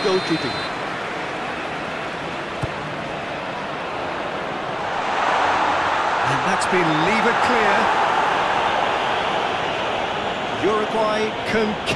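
A stadium crowd roars steadily, swelling louder partway through.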